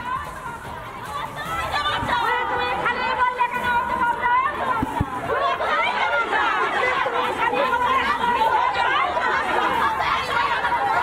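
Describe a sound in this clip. A crowd of women shout and argue loudly outdoors.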